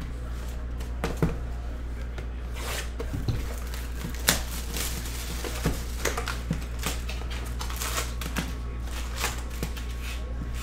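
Cardboard and foil packs rustle and tap as they are handled.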